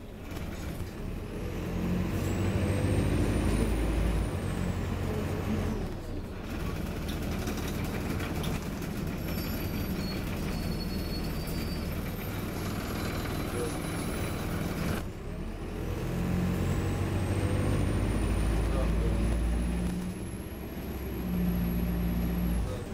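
A bus engine revs up and down as the bus pulls away and slows.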